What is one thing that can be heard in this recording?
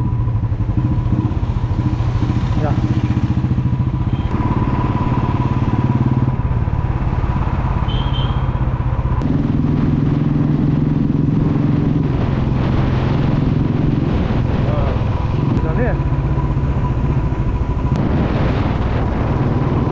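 A motorcycle engine thumps steadily up close as it rides along.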